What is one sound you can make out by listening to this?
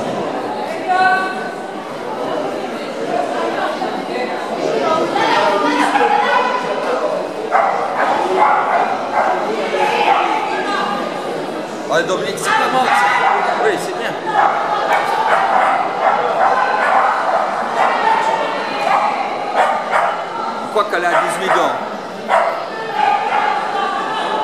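A woman calls commands to a dog in a large echoing hall.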